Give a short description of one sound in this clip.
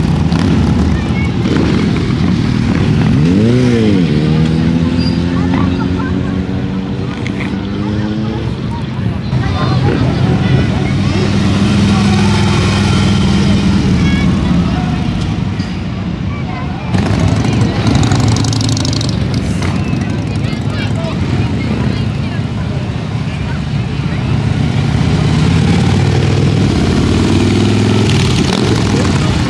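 Motorcycle engines rumble as bikes ride past one by one.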